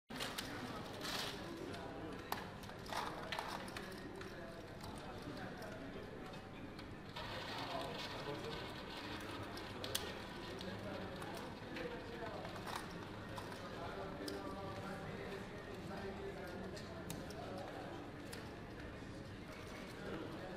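Casino chips clack together as they are stacked and sorted.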